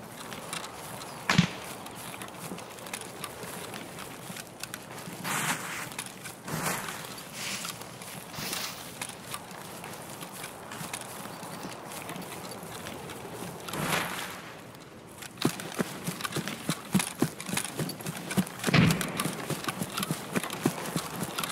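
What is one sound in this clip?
Footsteps swish and rustle through tall grass.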